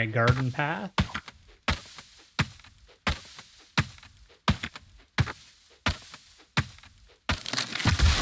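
An axe chops wood with sharp, regular knocks.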